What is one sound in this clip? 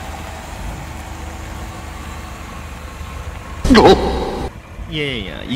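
A car engine idles close by with a low steady rumble.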